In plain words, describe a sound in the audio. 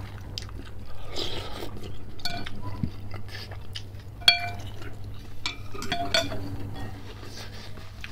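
A man slurps noodles loudly, close to the microphone.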